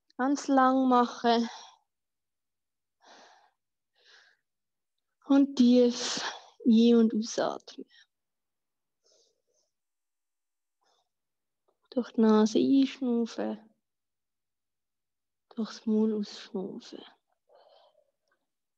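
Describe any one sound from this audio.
A woman speaks calmly in short phrases, heard through an online call.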